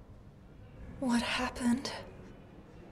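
A young woman speaks up briefly and anxiously, close by.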